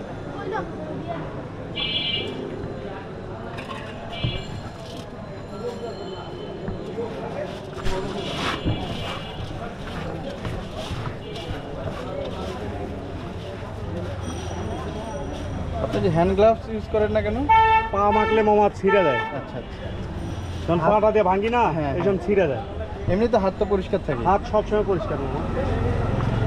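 Hands toss and mix dry rice in a metal pan with a soft rustle.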